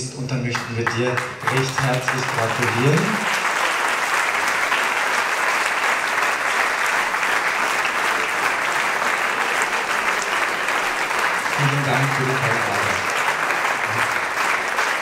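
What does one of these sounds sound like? A man speaks into a microphone over loudspeakers in a large hall, calmly announcing.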